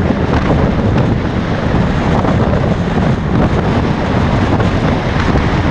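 Tyres roar loudly on the road surface.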